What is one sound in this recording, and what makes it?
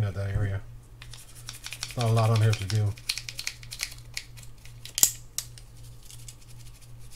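A toothbrush scrubs briskly on a small metal part.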